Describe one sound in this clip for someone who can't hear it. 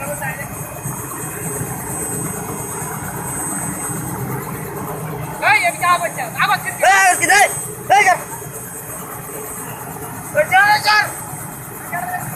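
A helicopter engine hums steadily with its rotor turning.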